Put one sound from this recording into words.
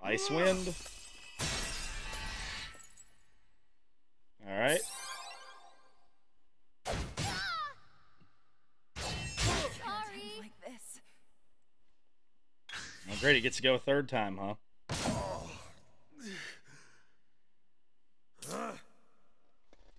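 Sharp magical swooshes and clashing impacts burst out in short bursts.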